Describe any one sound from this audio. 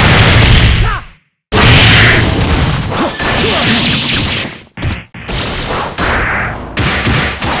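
Heavy hits land with sharp thuds.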